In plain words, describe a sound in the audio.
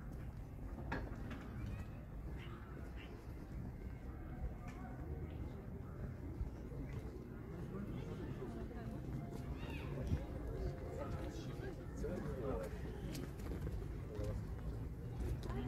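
A group of men and women chat at a distance outdoors.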